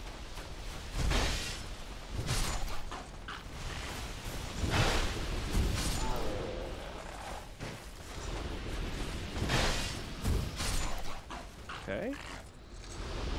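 Heavy weapons clash and thud in combat.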